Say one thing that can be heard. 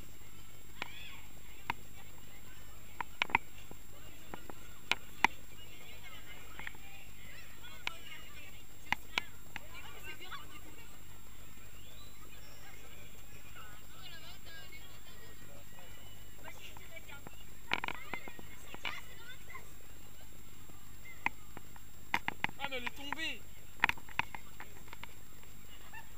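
A crowd of children chatters and calls out nearby outdoors.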